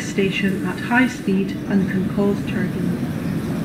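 Door warning beeps sound in short repeated tones.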